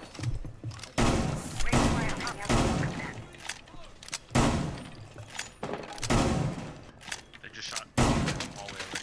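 A shotgun fires blast after blast through a wooden wall.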